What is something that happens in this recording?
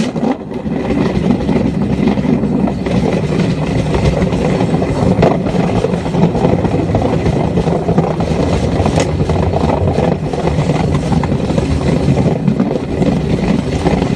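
Wind buffets loudly against a moving rider.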